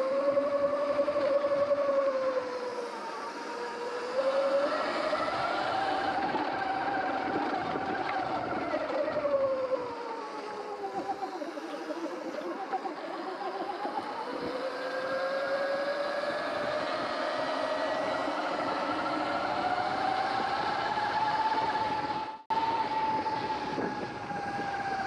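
Wind rushes past close by.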